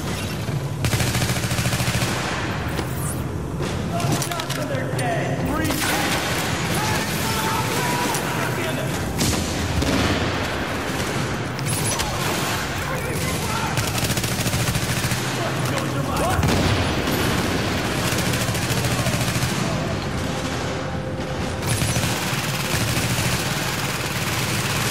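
Rapid gunfire bursts and crackles nearby.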